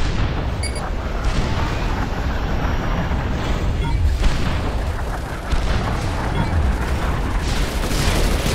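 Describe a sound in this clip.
Explosions and gunfire rumble on throughout.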